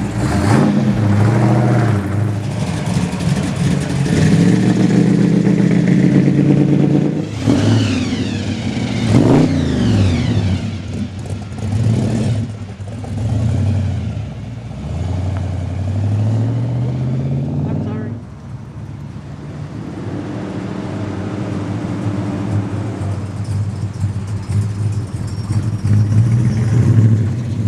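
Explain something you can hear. A muscle car engine rumbles loudly close by.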